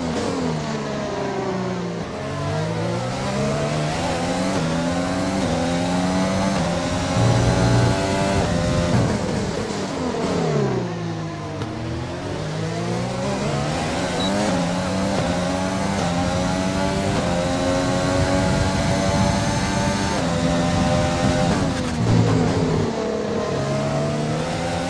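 A racing car engine screams at high revs, rising through the gears and dropping sharply when braking.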